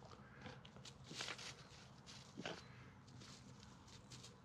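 A dog rolls and rustles on dry leaves and twigs.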